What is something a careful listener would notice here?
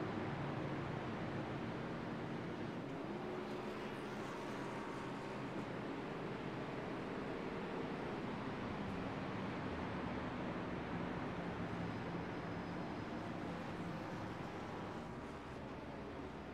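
Racing car engines roar steadily as the cars speed around the track.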